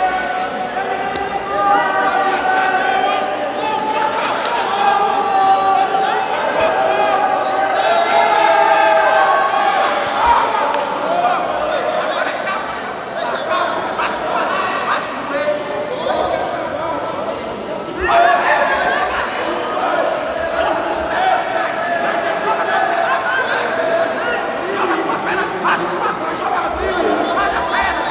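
Spectators shout and cheer in a large echoing hall.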